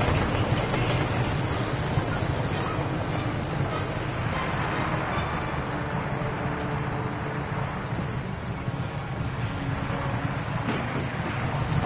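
Wind rushes past steadily during a high-speed glide.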